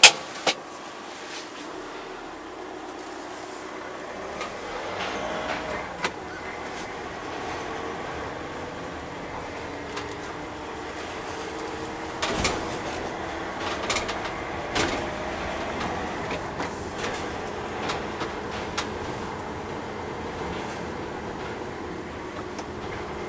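A van engine hums steadily as the van drives slowly.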